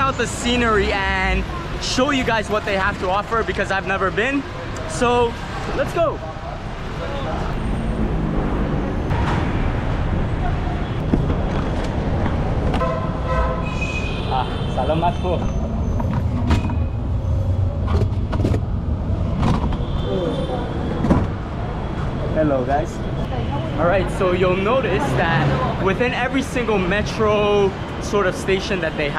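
Street traffic and crowd bustle rumble steadily in the background.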